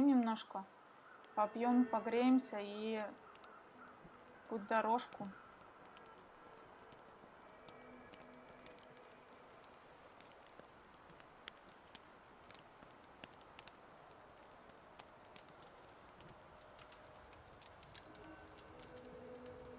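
A small fire crackles faintly.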